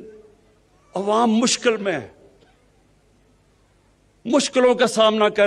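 A man gives a speech through a loudspeaker, outdoors, with pauses between phrases.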